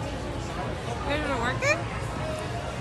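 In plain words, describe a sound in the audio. A young woman exclaims in a high voice, close by.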